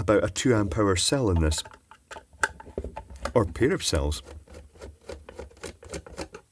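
A screwdriver turns a small screw with faint clicks.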